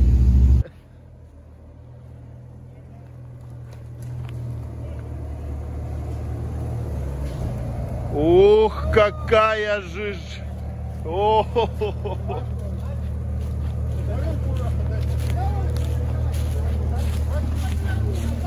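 An off-road vehicle's engine rumbles low and steady close by.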